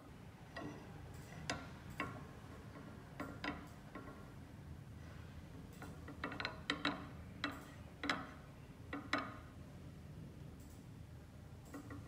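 A metal clamp knob is turned with light clicks.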